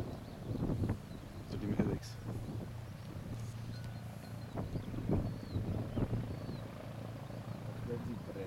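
A jet engine rumbles steadily nearby.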